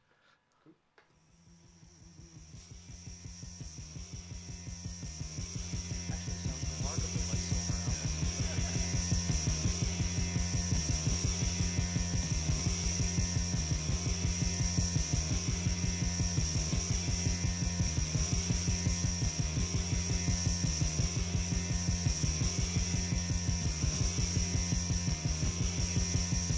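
Dance music with a steady thumping beat plays through loudspeakers and fades in at the start.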